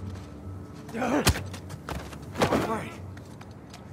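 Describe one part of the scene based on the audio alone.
Heavy blows land in a short scuffle.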